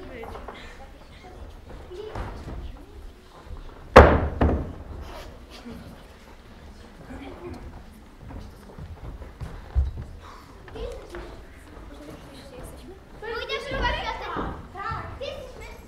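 Footsteps shuffle and thud on a wooden floor.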